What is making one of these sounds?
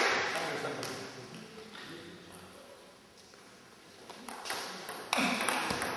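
A ball clicks back and forth on paddles and a table in a large echoing hall.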